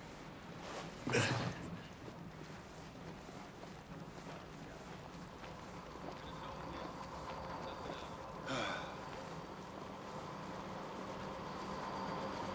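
Footsteps tread softly on a metal roof.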